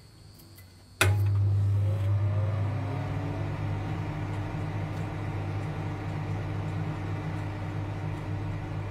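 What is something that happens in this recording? A microwave oven hums loudly and steadily.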